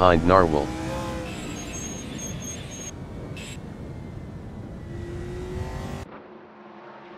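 A race car engine roars loudly from inside the cockpit.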